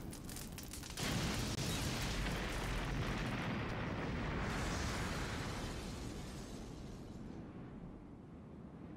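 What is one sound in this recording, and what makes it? A loud magical blast roars and slowly fades.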